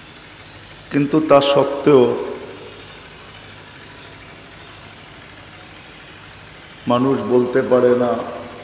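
An elderly man speaks into a microphone in a slow, sung preaching tone, heard through a loudspeaker with some echo.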